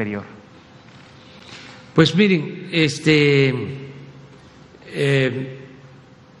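An elderly man speaks slowly and calmly into a microphone over loudspeakers, with pauses.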